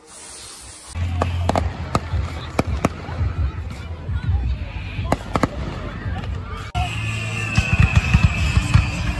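Fireworks bang and crackle outdoors.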